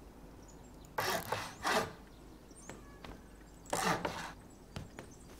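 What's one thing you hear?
Wooden building pieces thud and clatter into place with a quick knocking burst.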